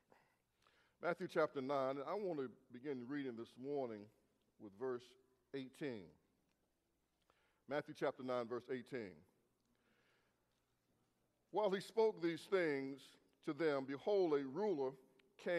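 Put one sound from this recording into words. A middle-aged man speaks slowly and calmly into a microphone.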